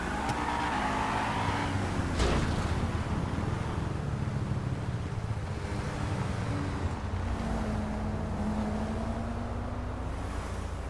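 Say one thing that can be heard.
A car engine hums steadily as a sports car drives along a road.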